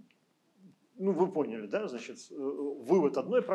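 An elderly man speaks calmly through a computer microphone.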